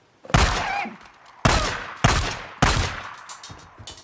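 A pistol fires loud shots that echo outdoors.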